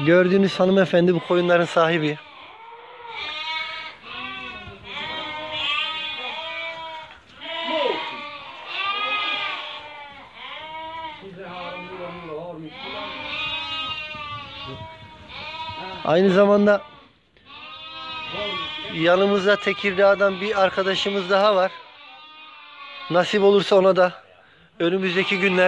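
Many sheep bleat loudly and often, close by.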